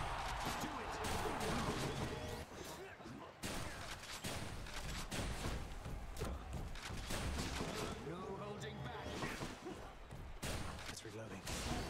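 Video game combat sounds clash and whoosh.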